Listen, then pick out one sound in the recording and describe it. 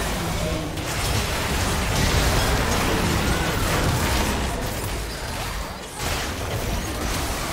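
Game spells and attack effects burst and clash rapidly.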